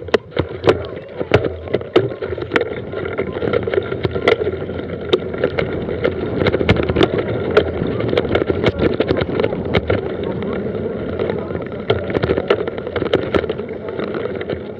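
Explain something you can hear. A mountain bike's frame and chain rattle over bumps.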